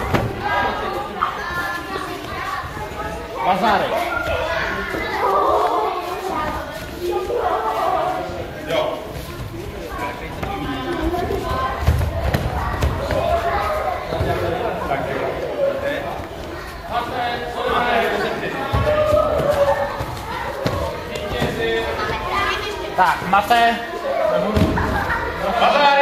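Children chatter and call out throughout a large echoing hall.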